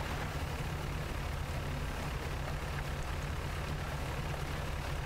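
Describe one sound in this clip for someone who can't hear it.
Wind blows steadily over open sea.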